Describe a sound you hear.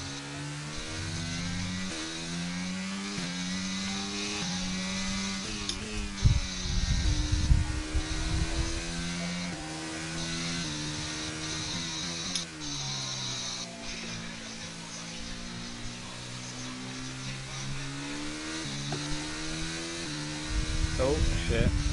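A racing car engine whines at high revs, shifting gears up and down.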